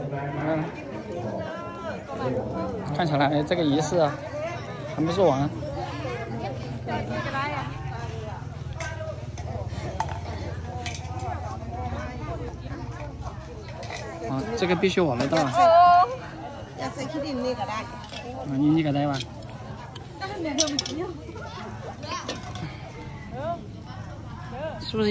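Young women chat and call out nearby, outdoors.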